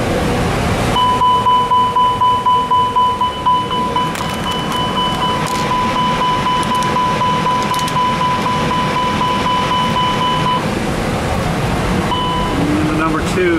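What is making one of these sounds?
A cockpit fire warning alarm rings loudly and steadily.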